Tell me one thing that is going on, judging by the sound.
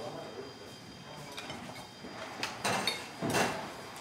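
Metal tongs clink against a plate.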